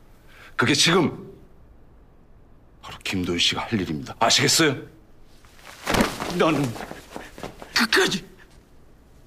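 A middle-aged man speaks tensely and close by.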